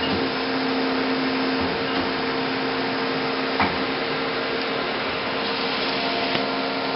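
A machine hums steadily with a constant drone.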